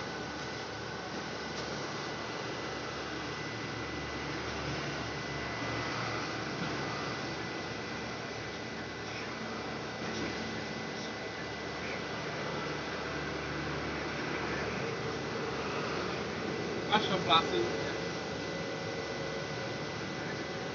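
A fuel pump hums steadily as it dispenses.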